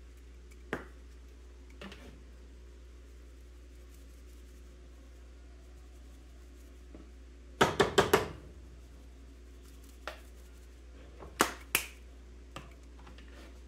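A spice shaker rattles as spice is shaken into a plastic bowl.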